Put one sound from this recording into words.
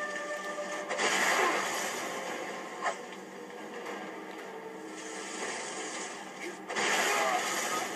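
A fire spell roars in bursts.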